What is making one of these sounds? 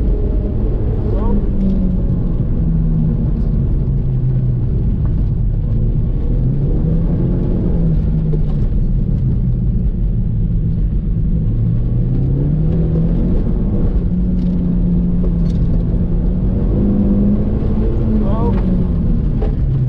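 Tyres squeal on pavement through tight turns.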